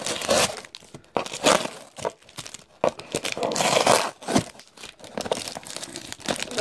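Plastic card packs rustle and crinkle as they are handled close by.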